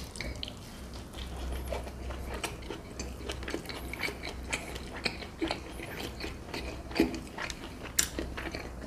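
A man chews food loudly and wetly close to the microphone.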